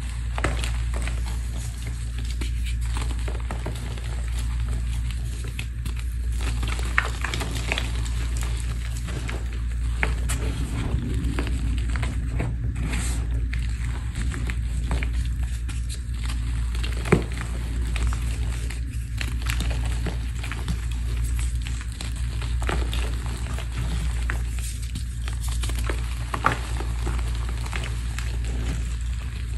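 Hands crumble and squeeze soft chalky powder with dry crunching and crackling.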